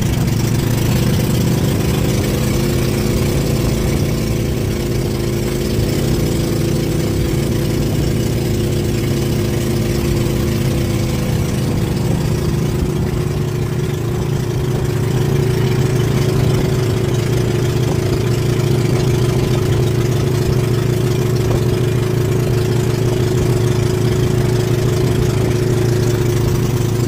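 A boat engine drones steadily and loudly close by.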